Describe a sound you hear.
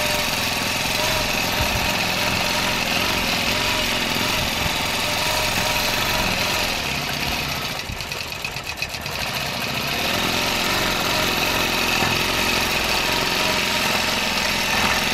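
A quilting machine hums and stitches rapidly.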